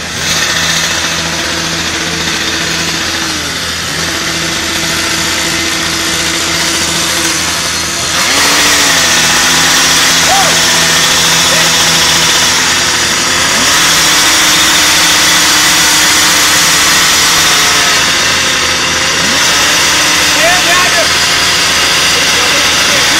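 A small two-stroke engine runs, its pitch shifting now and then.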